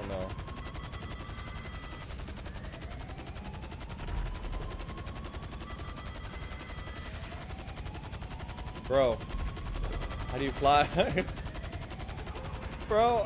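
A helicopter's rotor chops steadily throughout.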